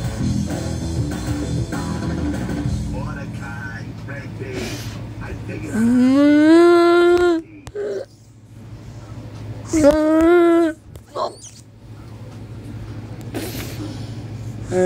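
Music with men singing plays through a small tablet speaker.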